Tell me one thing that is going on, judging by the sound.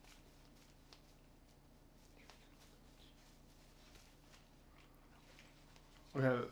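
Fabric of a bag rustles softly as it is handled.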